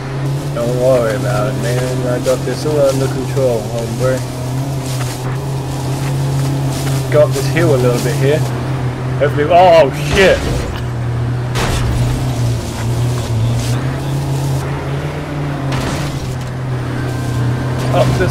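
A vehicle engine drones steadily.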